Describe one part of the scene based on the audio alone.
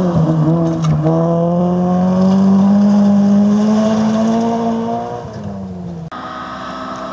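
A rally car engine roars at high revs as the car speeds past.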